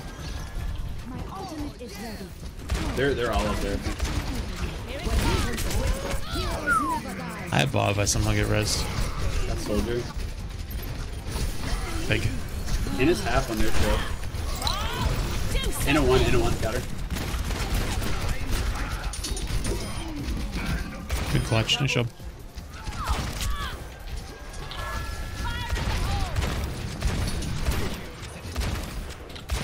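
Game gunfire and blasts crackle and boom.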